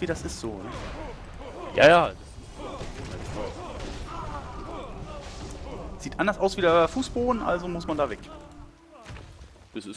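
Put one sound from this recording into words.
Magic spells burst and crackle during a fight.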